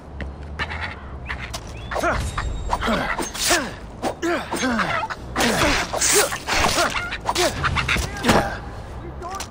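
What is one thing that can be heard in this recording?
A small animal snarls and squeals loudly up close.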